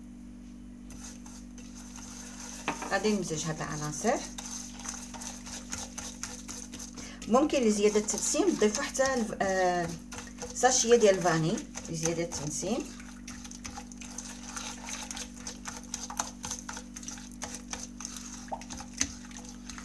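Fingers scrape and squish a sticky mixture against a clay dish.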